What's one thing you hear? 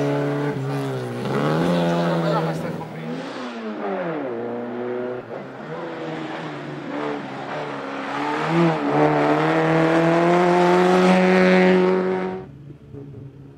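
A rally car engine roars and revs hard as the car races along a road.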